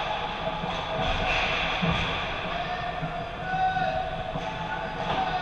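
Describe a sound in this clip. Skates scrape and carve across the ice in a large echoing rink.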